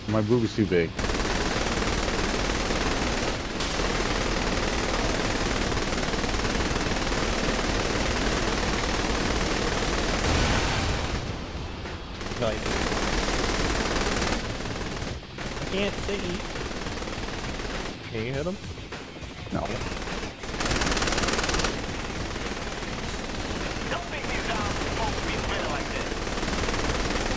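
Automatic guns fire in rapid, sustained bursts.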